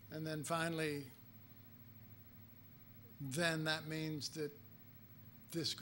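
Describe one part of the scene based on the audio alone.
An older man speaks calmly into a microphone, pausing between phrases.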